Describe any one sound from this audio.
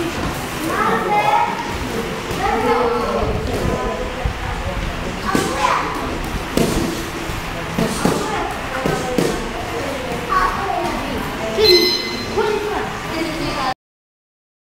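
Boxing gloves thud in quick punches.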